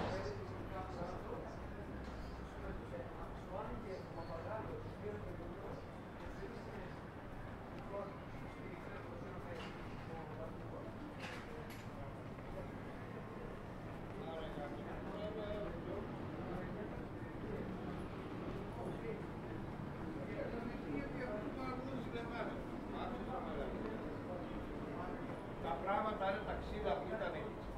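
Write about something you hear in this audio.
Footsteps tap on a paved street outdoors.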